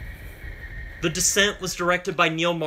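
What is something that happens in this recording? A young man speaks calmly, close to a microphone.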